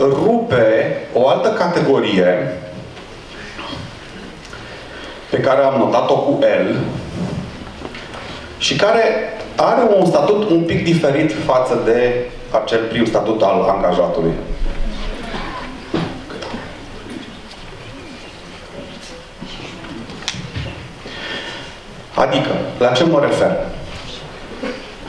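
A man speaks with animation through a microphone and loudspeakers, echoing in a large room.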